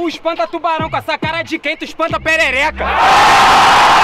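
A young man raps rapidly and forcefully through a microphone.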